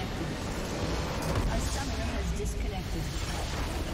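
A deep explosion booms as a structure is destroyed.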